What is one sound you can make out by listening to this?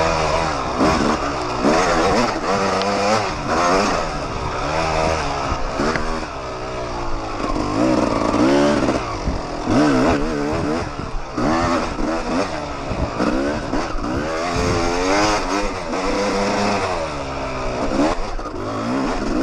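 A dirt bike engine roars close by, its pitch rising and falling as it revs.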